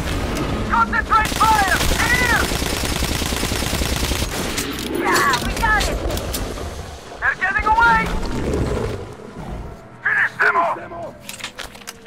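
Large creatures screech in high, wavering cries.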